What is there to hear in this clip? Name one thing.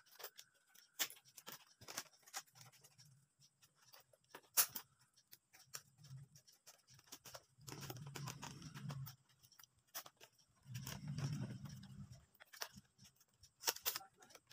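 Dry bamboo strips rustle and click as they are woven by hand.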